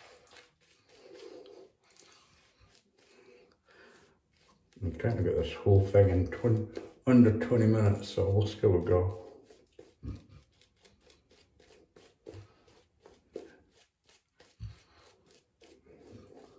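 A shaving brush swishes and scrubs against stubbly skin.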